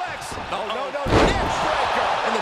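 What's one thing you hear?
A heavy thud sounds as a wrestler slams onto the mat.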